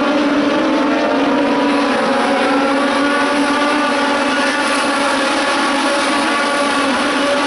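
Several racing car engines roar loudly as the cars speed past.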